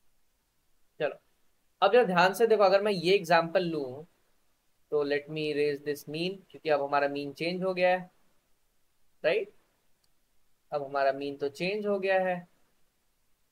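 A young man explains calmly over an online call.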